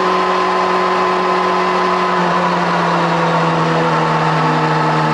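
A car engine roars loudly at high speed, its pitch dipping slightly.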